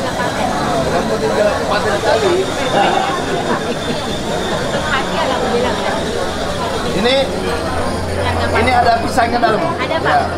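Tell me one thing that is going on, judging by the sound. A woman talks cheerfully up close.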